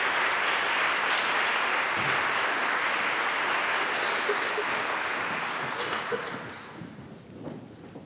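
An audience applauds in a large echoing hall.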